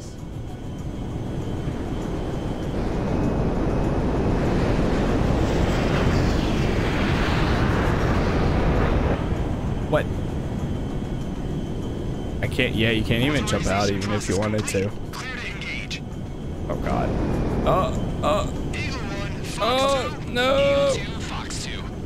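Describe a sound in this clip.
Jet engines roar loudly, rising and falling as planes pass close.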